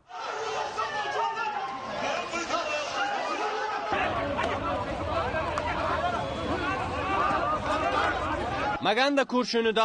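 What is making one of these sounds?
A crowd of men shouts and clamours outdoors.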